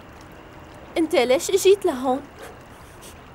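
A young man speaks in a strained voice.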